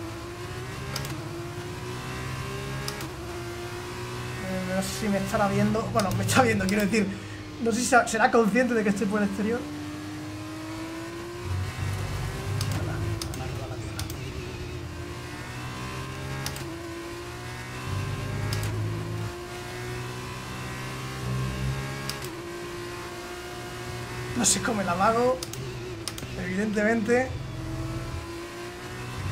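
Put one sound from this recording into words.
A racing car engine whines and shifts gears steadily.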